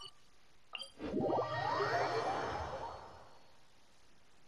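A shimmering magical flourish rises and fades.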